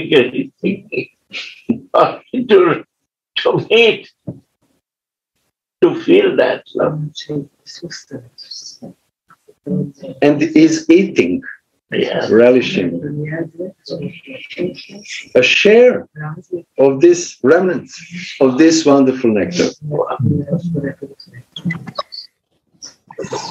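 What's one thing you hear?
An elderly man talks calmly over an online call.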